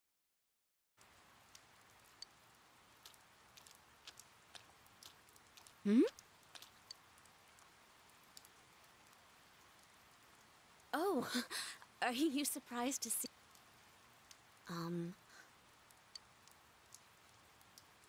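Rain falls steadily with a soft hiss.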